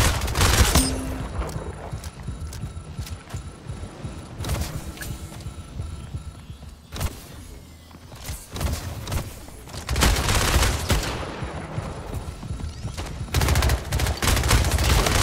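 Rapid gunfire crackles in loud bursts.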